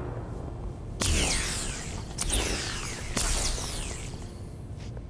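Sizzling energy blasts whoosh past.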